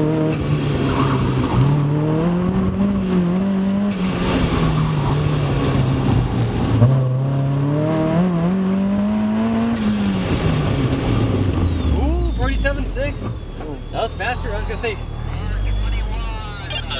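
A car engine revs hard, rising and falling in pitch as it accelerates and slows.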